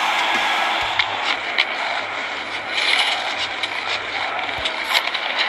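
Hockey sticks clack sharply against a puck on ice.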